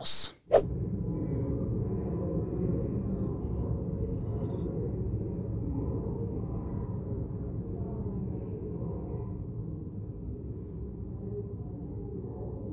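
A murmur of quiet voices and shuffling fills a large chamber with a soft echo.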